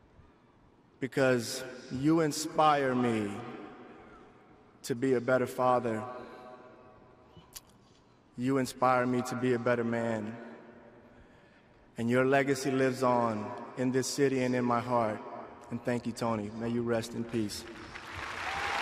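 A man speaks slowly and with emotion into a microphone, heard through loudspeakers with echo.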